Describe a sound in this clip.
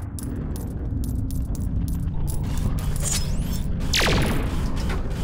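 Coins chime as they are collected.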